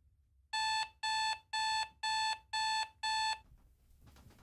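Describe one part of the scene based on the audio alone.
An alarm clock beeps in quick, even bursts.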